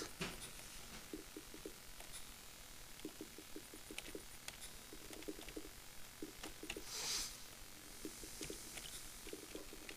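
Light, quick footsteps of a small game character patter steadily.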